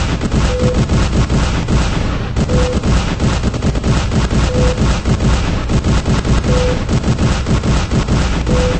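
Electricity crackles and buzzes loudly and steadily.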